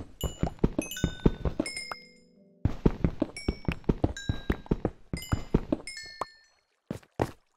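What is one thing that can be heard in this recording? A pickaxe chips at stone blocks with quick, repeated knocks.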